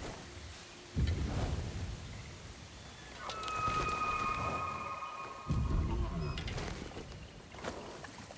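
A large stag snorts and breathes heavily up close.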